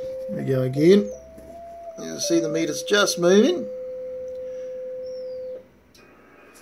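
A steady electronic tone hums from a radio, then cuts off.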